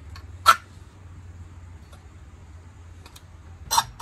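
A hacksaw rasps back and forth through metal.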